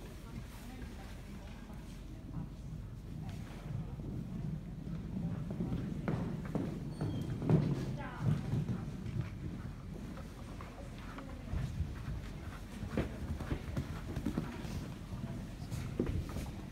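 Nearby spectators murmur in a large echoing hall.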